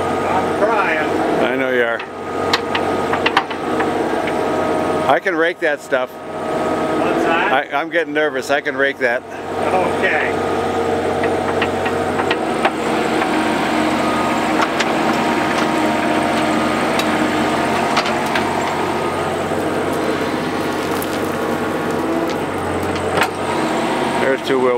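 A diesel mini excavator's engine runs.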